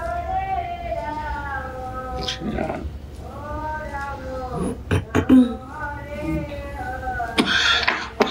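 An elderly man chants a slow, drawn-out melody close by.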